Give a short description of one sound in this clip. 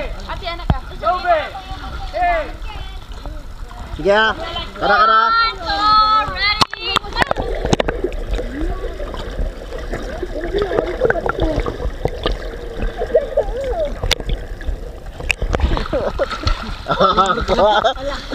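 Young women and children shout and laugh excitedly close by, outdoors.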